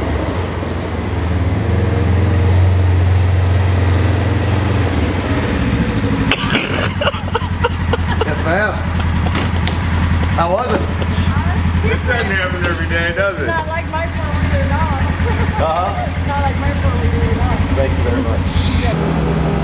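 An off-road vehicle's engine idles with a steady low rumble.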